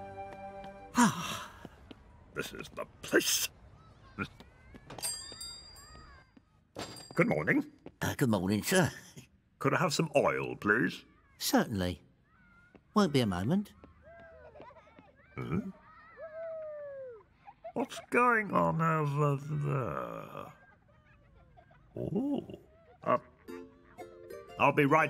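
A man mumbles and grunts in a comic voice.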